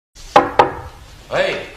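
Knuckles knock on a wooden door.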